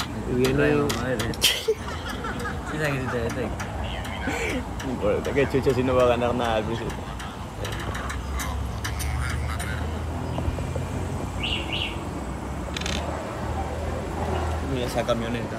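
Young men talk and laugh close by with animation.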